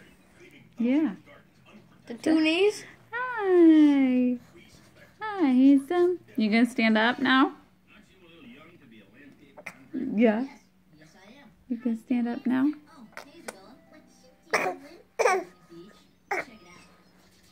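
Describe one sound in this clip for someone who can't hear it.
A baby babbles and squeals close by.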